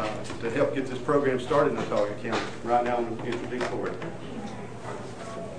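A man speaks calmly into a microphone, in a room with some echo.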